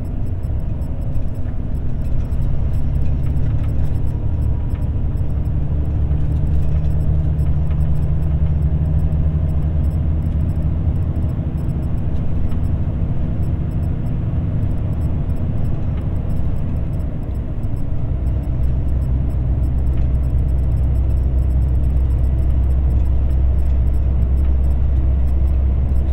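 A vehicle's engine drones steadily as it drives along a road.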